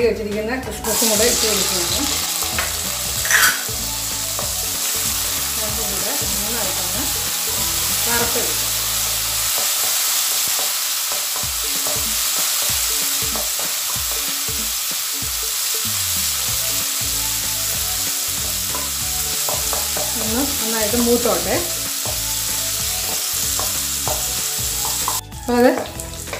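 Food sizzles and fries in hot oil.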